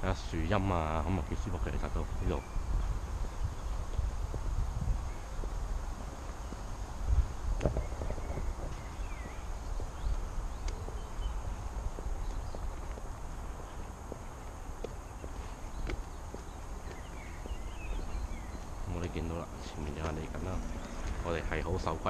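Wind buffets the microphone steadily, outdoors.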